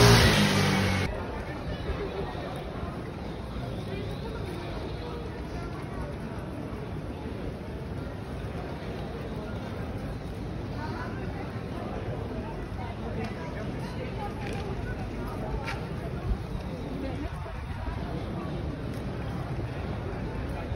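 A crowd of people murmurs and chatters outdoors.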